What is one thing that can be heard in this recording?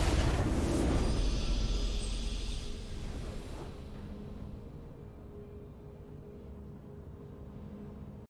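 A triumphant game fanfare plays and fades.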